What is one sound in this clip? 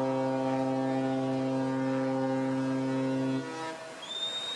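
A ship's horn blows a long, deep, steady blast.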